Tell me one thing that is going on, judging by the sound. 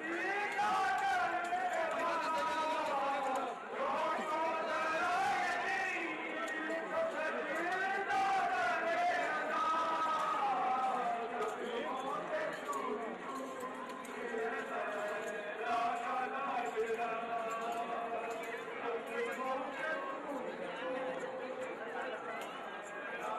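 Many men beat their chests in a steady rhythm.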